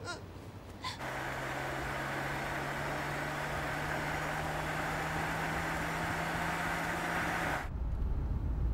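A car drives past on a road with a steady engine hum.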